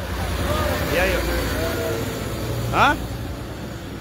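Men riding on a truck shout and cheer.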